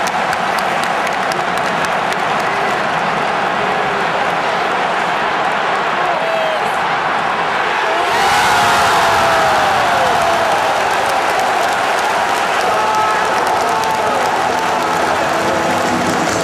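A huge stadium crowd roars and chants throughout.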